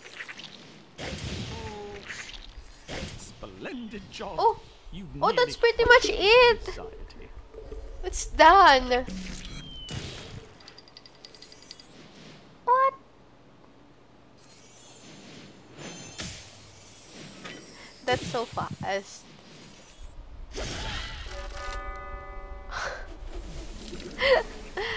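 Video game sound effects blast and chime.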